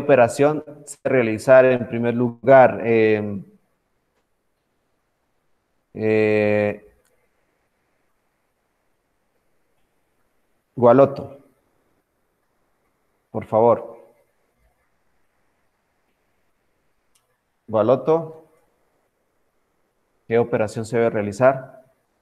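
A young man speaks calmly into a microphone over an online call, with pauses.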